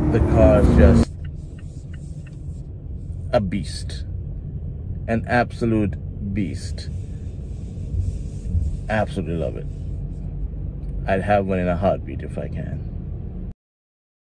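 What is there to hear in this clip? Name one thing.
A low engine rumble hums steadily inside a car.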